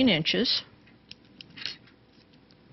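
Scissors snip through cord.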